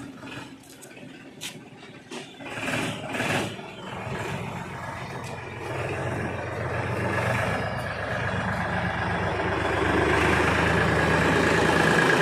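Metal disc blades clank and rattle over a paved lane.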